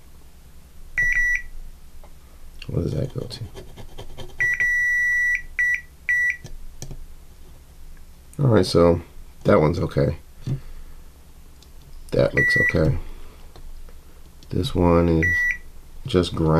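A multimeter beeps in short, steady tones.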